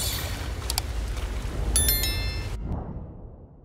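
Metallic blades clash with a bright ringing.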